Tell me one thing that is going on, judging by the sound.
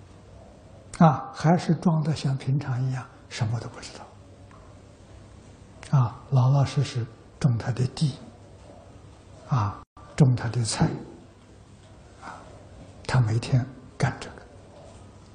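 An elderly man speaks calmly in short phrases with pauses, heard through a clip-on microphone.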